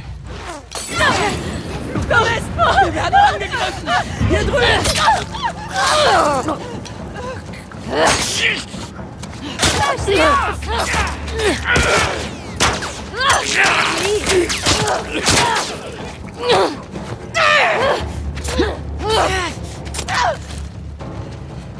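Men shout and grunt loudly.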